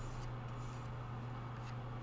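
A paintbrush dabs softly on paper.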